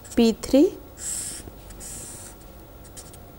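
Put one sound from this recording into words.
A marker squeaks across paper in short strokes.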